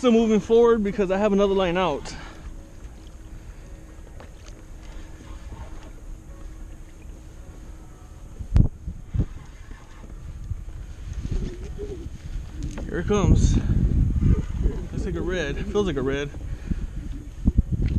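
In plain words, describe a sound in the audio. Small waves lap gently against a small boat.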